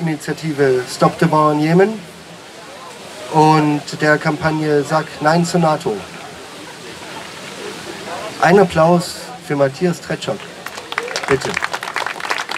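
A man speaks into a microphone outdoors, addressing a crowd.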